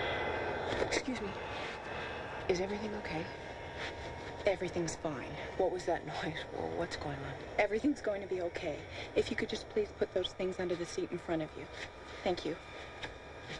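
A young woman answers quietly close by.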